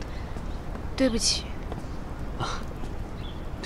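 A young woman speaks in short, tense phrases close by.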